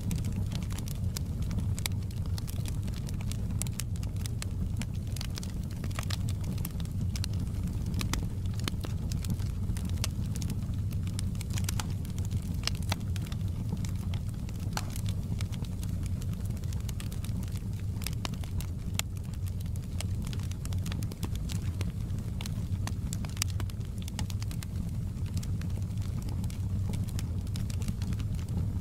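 Burning logs crackle and pop sharply.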